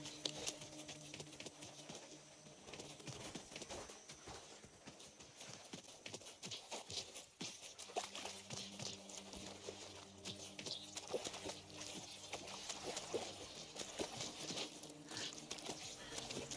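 Footsteps crunch quietly over the ground.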